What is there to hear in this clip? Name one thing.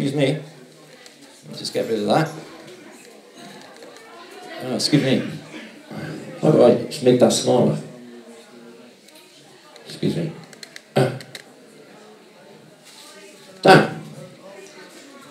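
A man speaks haltingly into a microphone, heard through a loudspeaker in a room.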